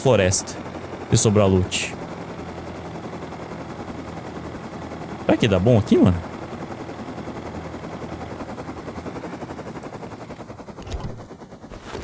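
A small helicopter engine drones steadily, then stops.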